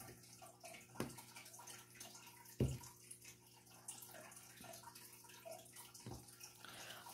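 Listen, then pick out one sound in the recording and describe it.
A plastic pen taps lightly on a hard surface.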